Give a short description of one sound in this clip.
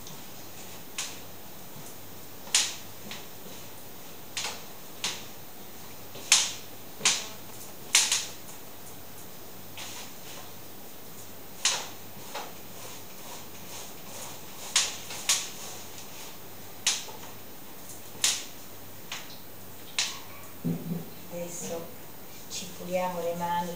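Hands knead and slap dough on a table, with soft thuds now and then.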